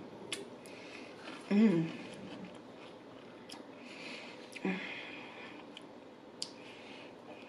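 A woman chews food loudly close to a microphone.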